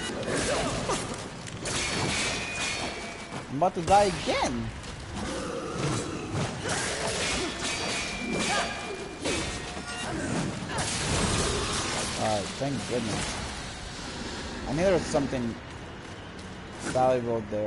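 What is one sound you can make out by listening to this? Flames whoosh and crackle.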